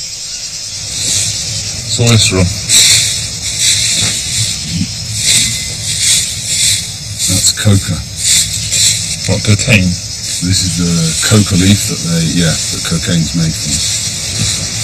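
Dry leaves rustle and crackle as hands scoop through them.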